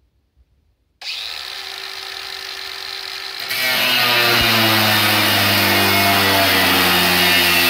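An angle grinder starts up with a whine and then grinds loudly against metal.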